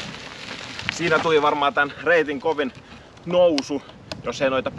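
A man speaks calmly to the listener, close by, outdoors.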